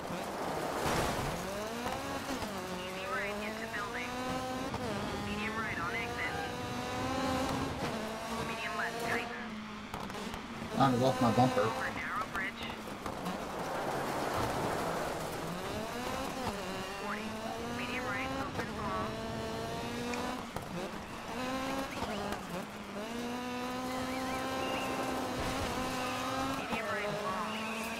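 A rally car engine revs hard and rises in pitch through each gear, then drops as it shifts.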